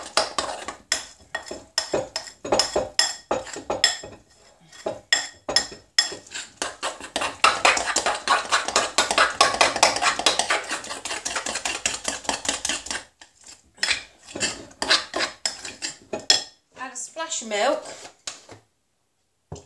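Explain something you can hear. A spoon scrapes and clinks against a glass bowl while mixing.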